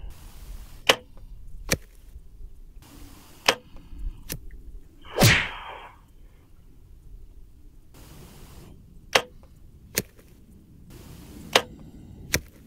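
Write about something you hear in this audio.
A bow string snaps as an arrow is shot.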